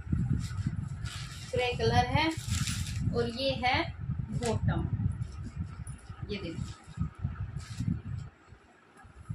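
Cloth rustles and crinkles as it is handled close by.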